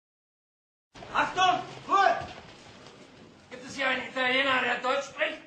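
A man speaks loudly and sharply in a room with some echo.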